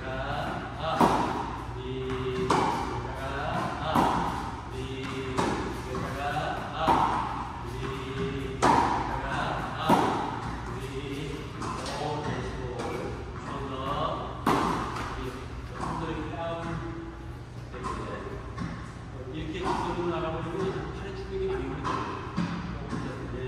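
A tennis racket strikes a ball again and again, echoing in a large hall.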